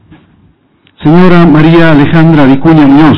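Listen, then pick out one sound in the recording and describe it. A man speaks loudly into a handheld microphone.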